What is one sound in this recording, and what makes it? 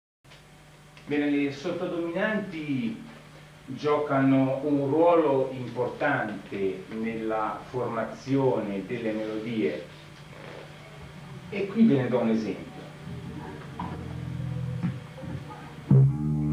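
An electric bass guitar plays low notes.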